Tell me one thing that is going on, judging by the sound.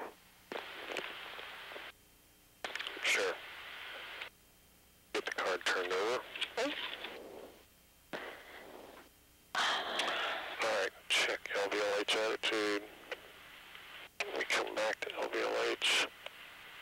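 A man speaks calmly over a crackling radio intercom.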